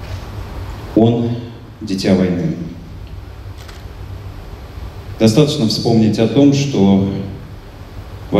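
A man sings through a microphone, with pauses between phrases.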